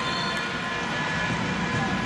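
A young woman shouts.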